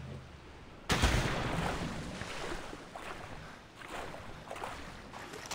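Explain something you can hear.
Water splashes as a swimmer moves through it.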